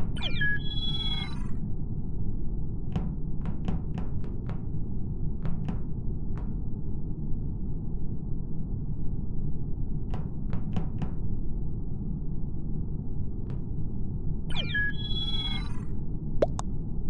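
A short electronic chime rings out for a chat message.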